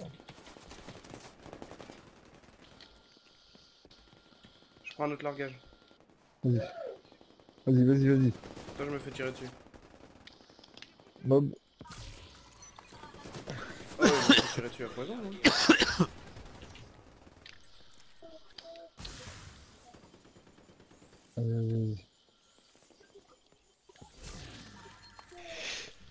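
Gunfire bursts rapidly.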